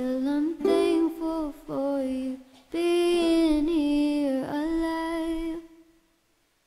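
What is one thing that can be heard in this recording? A young woman sings close to a microphone.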